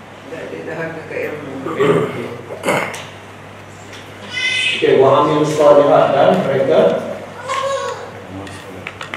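A middle-aged man speaks calmly into a microphone, as if teaching.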